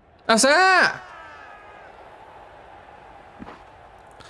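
A crowd cheers in a large stadium.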